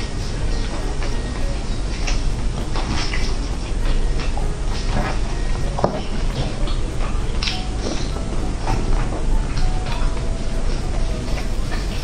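Plastic gloves crinkle close up.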